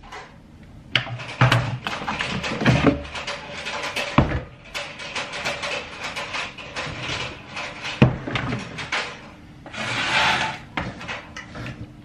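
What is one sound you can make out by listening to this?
Metal kitchen parts clunk and clatter close by.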